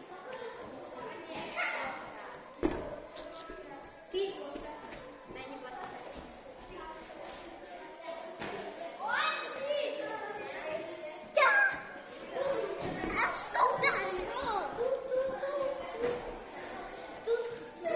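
Children's voices chatter and call out in a large echoing hall.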